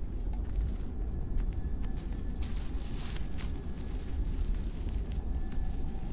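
Dry grass rustles as it is pushed aside.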